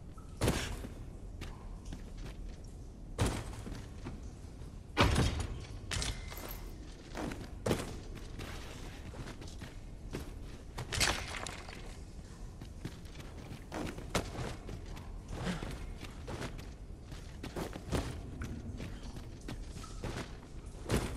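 Armoured footsteps clatter on stone.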